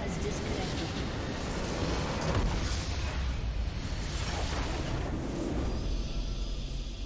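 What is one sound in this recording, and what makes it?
A huge crystal shatters in a loud, rumbling explosion.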